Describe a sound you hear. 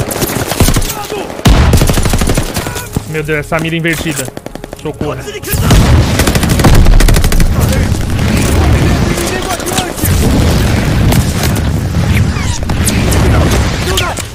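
Gunfire crackles and booms from a video game.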